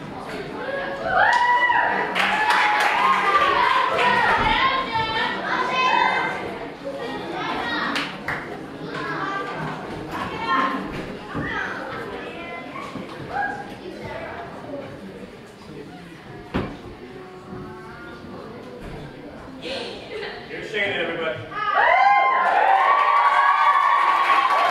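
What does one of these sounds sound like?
A crowd of young people cheers and shouts in a large echoing hall.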